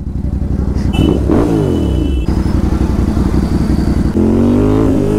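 A motorcycle engine idles with a deep, throbbing rumble.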